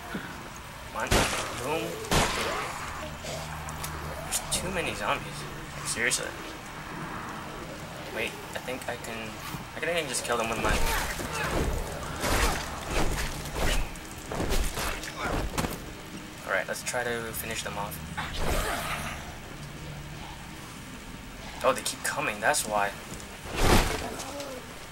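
Blows and gunshots crack in a video game fight.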